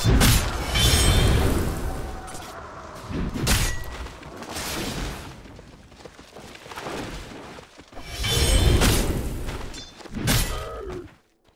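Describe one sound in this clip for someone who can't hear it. Game spells crackle and blast in bursts during a fight.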